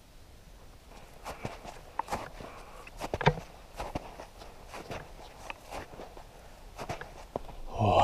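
Boots crunch on snow with steady footsteps.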